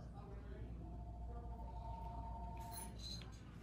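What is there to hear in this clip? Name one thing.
A nail lamp beeps with a steady electronic tone.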